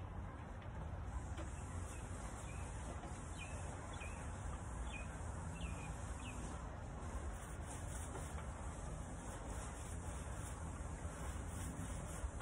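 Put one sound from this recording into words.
A paint sprayer hisses steadily close by.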